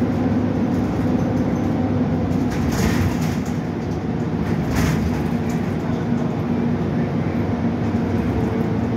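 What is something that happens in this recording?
A bus cabin rattles and creaks over the road.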